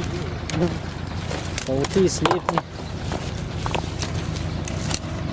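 A man's footsteps crunch over grass and stones outdoors.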